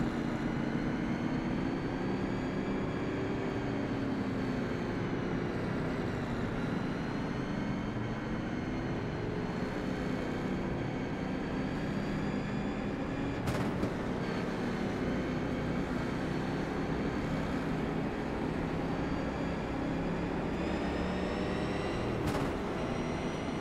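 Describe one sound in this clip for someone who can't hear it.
A race car engine roars steadily, its pitch rising and falling with the gears.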